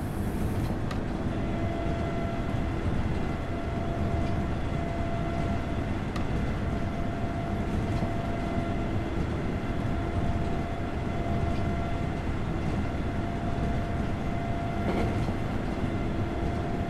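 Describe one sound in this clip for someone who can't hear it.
A train's electric motors hum with a steady whine.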